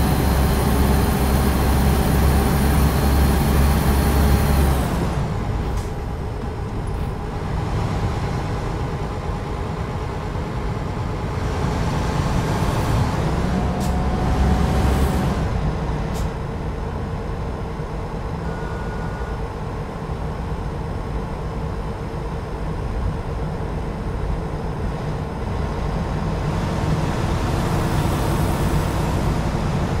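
A truck engine hums steadily while driving.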